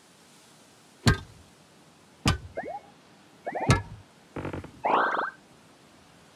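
A pickaxe strikes stone with sharp, ringing blows.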